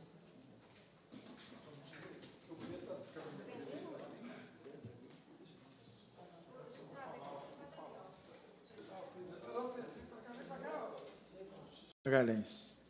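Several people chat quietly in a room.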